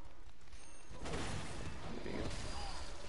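A heavy weapon strikes with a loud crash.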